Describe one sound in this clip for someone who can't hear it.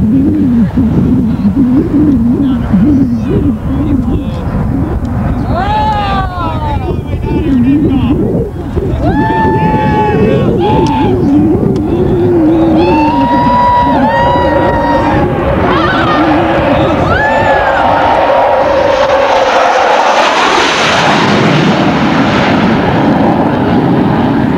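A jet engine roars loudly as a fighter jet takes off and climbs away.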